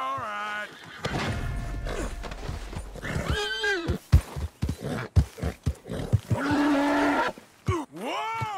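Hooves thud at a gallop over the ground.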